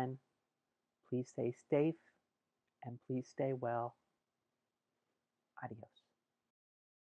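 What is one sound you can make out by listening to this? A middle-aged woman speaks calmly and warmly close to a microphone.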